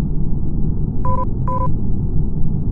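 A short electronic double beep sounds.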